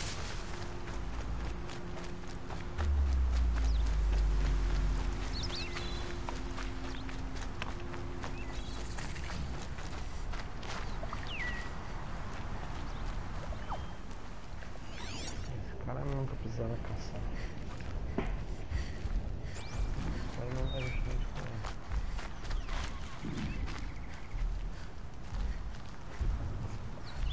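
Leaves rustle as footsteps push through dense undergrowth.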